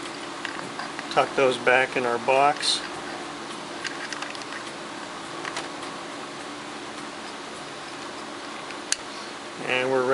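Plastic wire connectors rustle and click softly as they are twisted.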